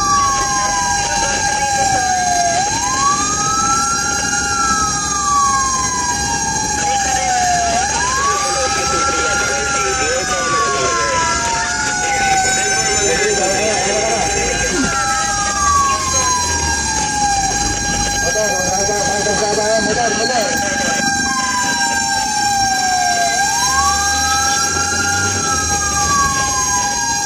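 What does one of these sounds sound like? A vehicle engine hums steadily while driving along a road.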